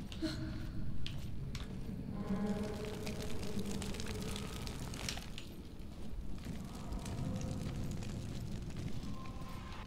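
Footsteps tread on a stone floor.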